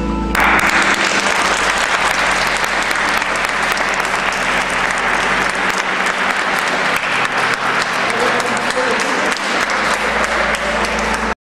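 A crowd claps and cheers loudly in a large echoing hall.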